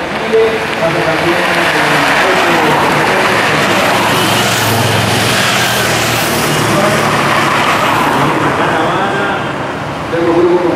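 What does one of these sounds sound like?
Motorcycle engines rumble as they ride past.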